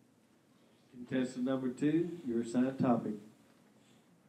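An elderly man speaks briefly through a microphone in an echoing hall.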